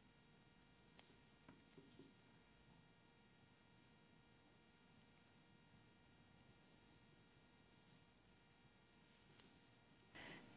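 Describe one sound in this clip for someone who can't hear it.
A crochet hook softly ticks as yarn is pulled through.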